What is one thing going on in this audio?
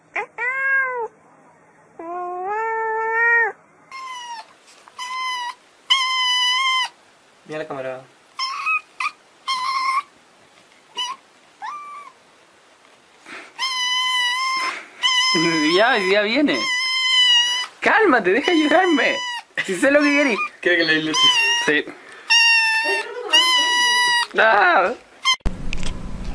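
A kitten meows repeatedly in high, insistent cries.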